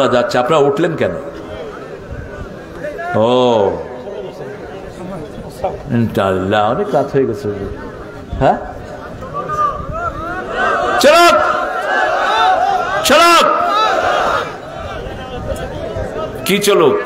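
A man preaches with animation into a microphone, heard through loudspeakers.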